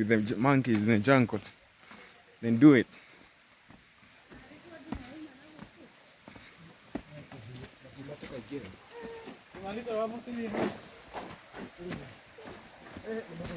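A young man talks close to the microphone with animation.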